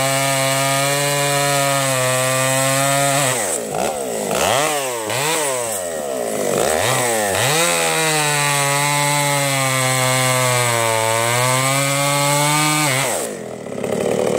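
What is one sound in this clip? A chainsaw cuts through a log.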